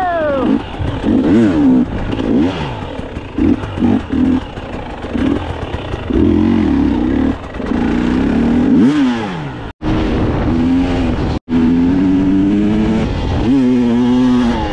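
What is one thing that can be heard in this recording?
A dirt bike engine revs up and down close by, rising and falling in pitch.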